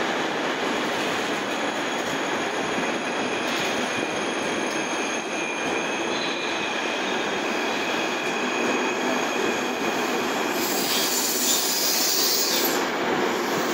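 A passenger train rumbles and clatters steadily past.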